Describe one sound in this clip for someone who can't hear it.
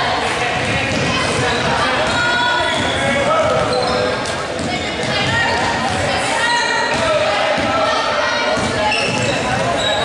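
A basketball bounces on the court in a steady dribble.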